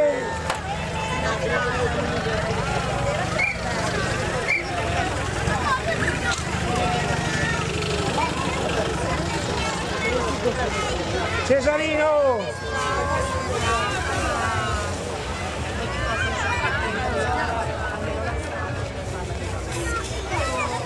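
A crowd of adults and children chatter and call out outdoors.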